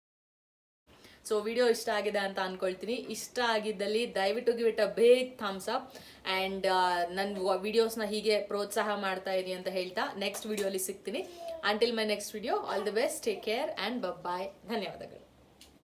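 A young woman talks nearby with animation.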